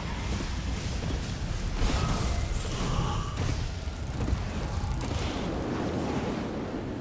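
Fiery magic blasts boom and crackle in a fight.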